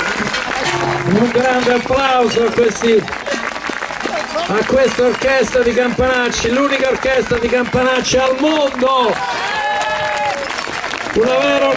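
A group of men and women sings together through loudspeakers.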